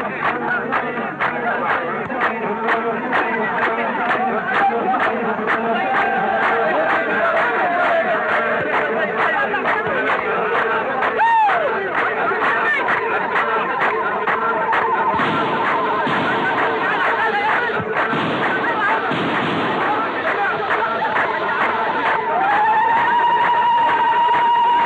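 A crowd claps hands in a steady rhythm.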